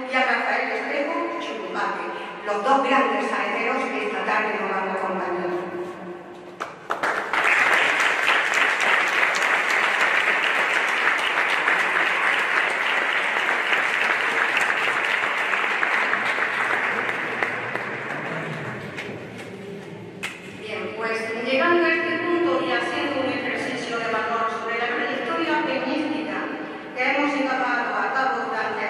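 A man speaks calmly through a microphone in a large echoing hall.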